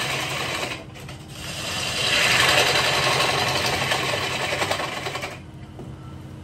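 A bench grinder grinds metal with a loud, harsh whine.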